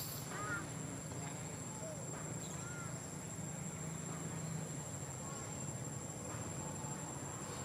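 A baby monkey squeaks softly now and then.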